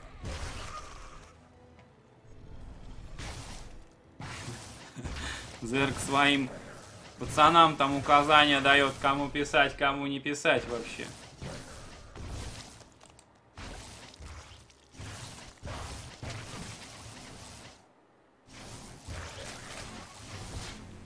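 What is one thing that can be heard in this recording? Game battle effects crackle and zap.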